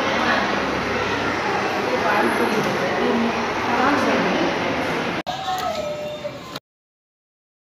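A man talks with women nearby.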